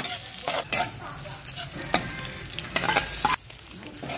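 Chopped food slides from a plate into a wok.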